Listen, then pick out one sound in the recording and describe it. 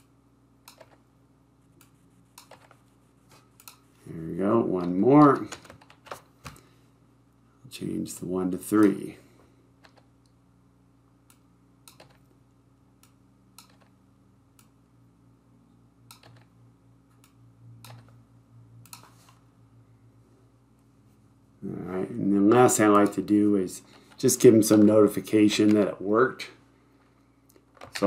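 Computer keys and a mouse click softly.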